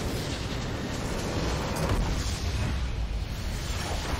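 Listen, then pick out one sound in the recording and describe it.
A video game structure explodes with a deep boom.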